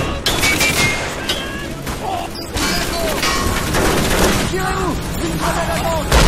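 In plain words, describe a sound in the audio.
Explosions rumble and boom throughout.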